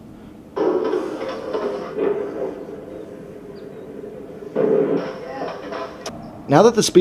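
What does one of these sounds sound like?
Skateboard wheels roll and clatter on concrete.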